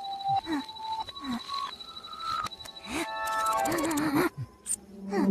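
A handheld gadget beeps in quick tones that step higher and higher.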